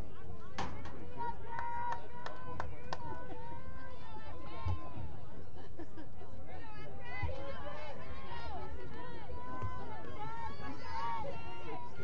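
Young women shout and call to each other across an open field, heard from a distance.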